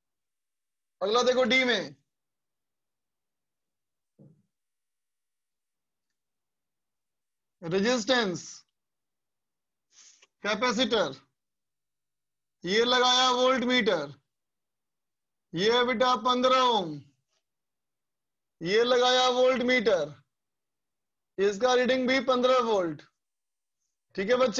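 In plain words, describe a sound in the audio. A man speaks calmly and close up, in short bursts with pauses.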